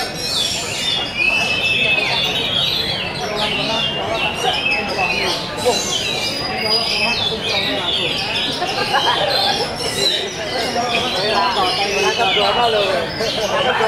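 A songbird sings loudly and continuously in varied whistling phrases close by.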